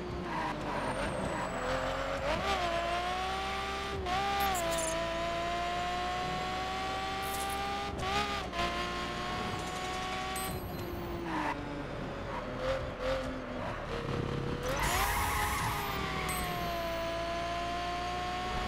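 A racing car engine roars at high speed, its pitch rising and dropping with gear shifts.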